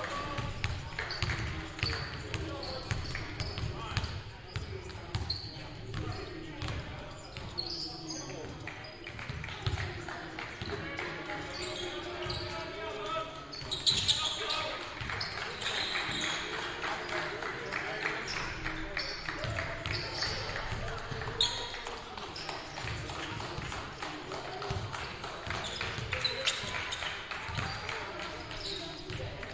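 Basketball sneakers squeak sharply on a hardwood court in a large echoing gym.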